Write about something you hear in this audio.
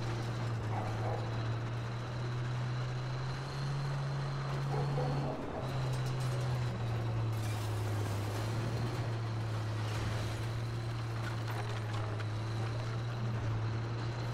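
A tank engine rumbles steadily with a low drone.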